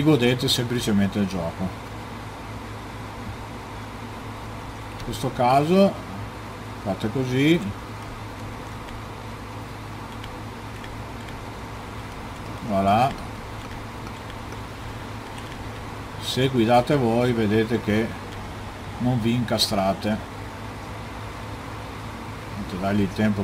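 A man talks into a microphone with animation, in short bursts.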